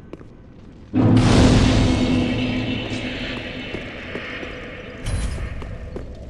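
A burst of fire roars up and slowly dies away.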